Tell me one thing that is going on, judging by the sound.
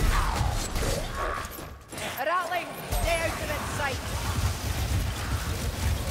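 Blades slash and clash in a fight.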